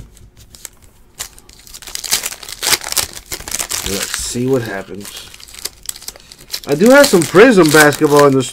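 Foil wrappers crinkle and tear as card packs are ripped open.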